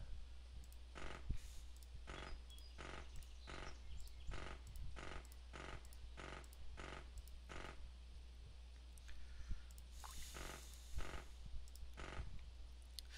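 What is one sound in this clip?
Short soft clicks repeat at an even pace.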